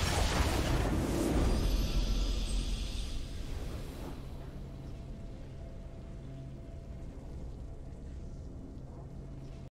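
A triumphant victory fanfare plays.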